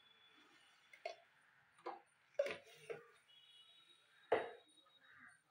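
A spoon taps against a jar.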